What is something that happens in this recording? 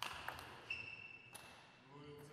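Sports shoes squeak sharply on a hall floor.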